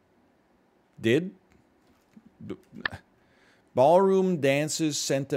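A man speaks close to a microphone, in short bursts with animated, drawn-out pitch.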